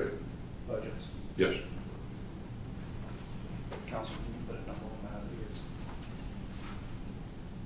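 An elderly man speaks calmly.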